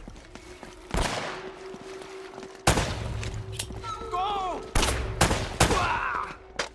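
Pistol shots ring out, sharp and loud, a few at a time.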